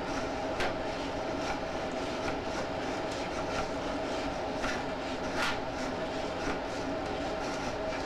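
A probe scrapes and knocks against the inside of a pipe.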